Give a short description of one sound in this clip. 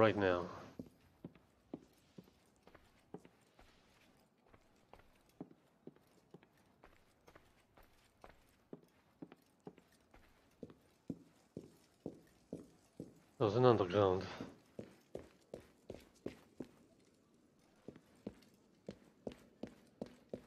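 Footsteps tap steadily on a wooden floor.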